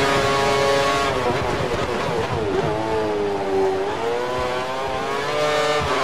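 A racing car engine drops in pitch as the car brakes, then revs up again.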